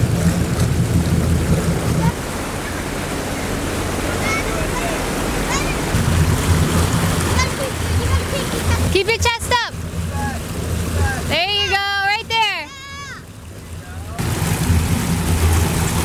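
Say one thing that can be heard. A motorboat engine drones steadily.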